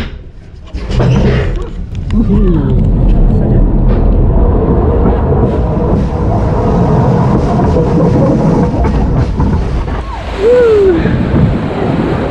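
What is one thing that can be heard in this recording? A boat ride rumbles along with a steady low churning.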